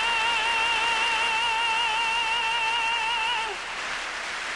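A man sings a long, high held note with vibrato through a microphone.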